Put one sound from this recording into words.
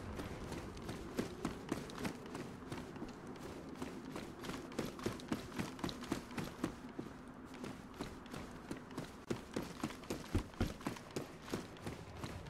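Footsteps crunch steadily on gritty ground.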